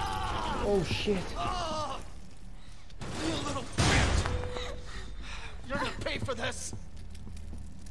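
An elderly man groans in pain.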